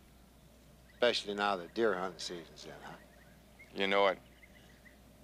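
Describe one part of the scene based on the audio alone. An older man talks in a friendly, amused way, close by.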